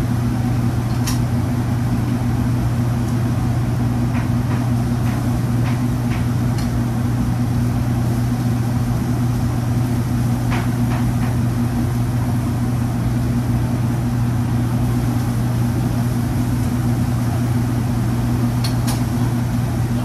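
Metal utensils clink and scrape now and then.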